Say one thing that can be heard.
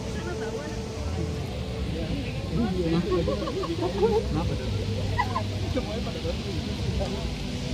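A crowd of young people chatter and call out nearby.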